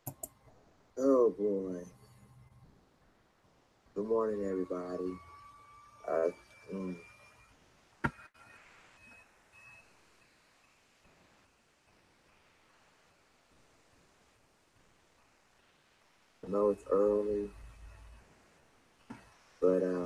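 A man talks calmly and close to a microphone, with pauses.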